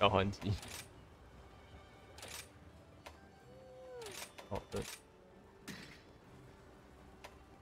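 Game menu sounds click and chime.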